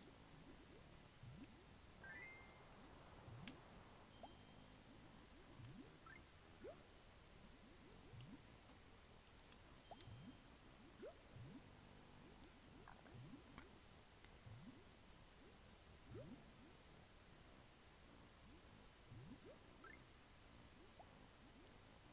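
Wings flap in a steady, repeating rhythm.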